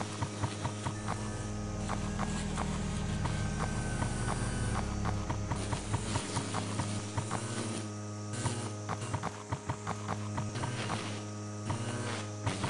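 A small mower whirs steadily while cutting grass.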